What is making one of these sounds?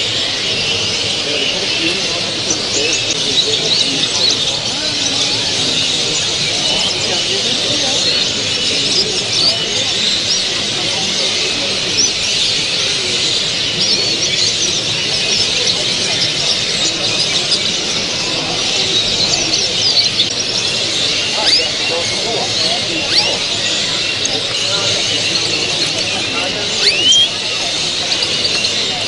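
Many caged songbirds chirp and twitter all around.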